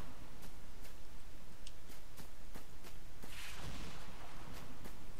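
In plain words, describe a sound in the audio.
Footsteps tread through grass.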